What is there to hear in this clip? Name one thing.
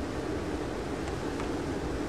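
Water from a waterfall rushes steadily.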